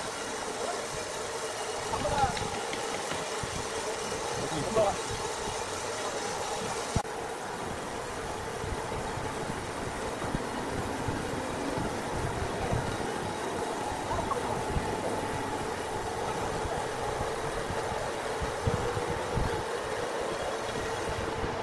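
A sawmill machine hums steadily.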